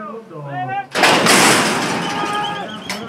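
Starting gates bang open with a loud metallic clatter.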